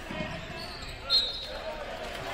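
A referee's whistle blows once, short and shrill.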